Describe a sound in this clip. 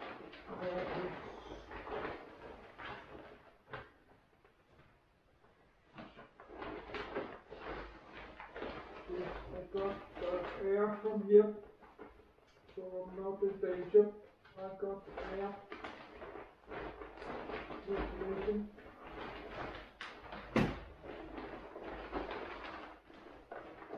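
Plastic sheets rustle and crinkle close by.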